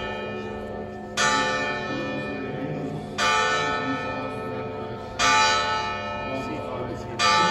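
A large church bell tolls slowly and rings out, each stroke lingering.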